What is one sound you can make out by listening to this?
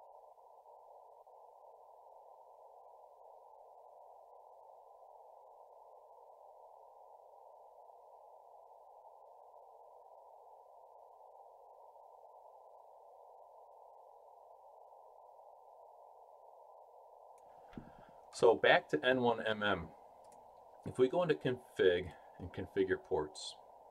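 A radio receiver hisses softly and steadily.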